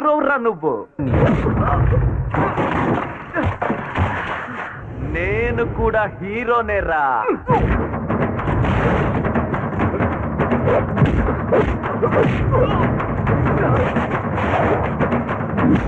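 Punches and bodies thud hard during a fight.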